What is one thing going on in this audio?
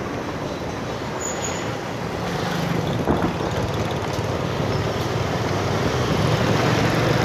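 Motorbike engines hum and buzz steadily on a busy street close by.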